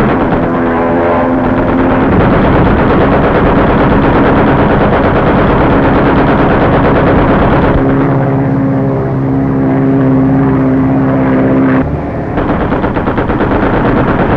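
An airplane engine roars steadily close by.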